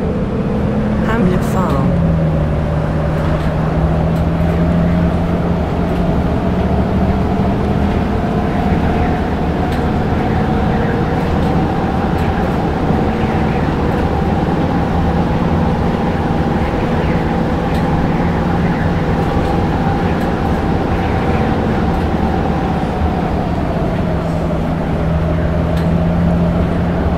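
A diesel city bus engine drones while cruising along a road.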